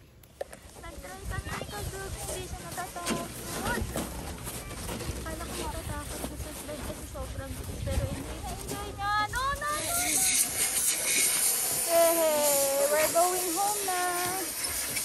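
A young child babbles nearby.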